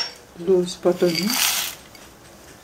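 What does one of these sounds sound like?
Almond slivers pour and patter into a metal pot.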